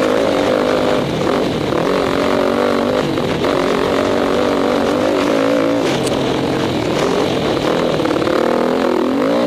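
A dirt bike engine revs loudly close by, rising and falling as the rider shifts.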